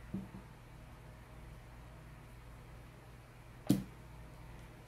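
A small plastic object knocks down onto a hard tabletop twice.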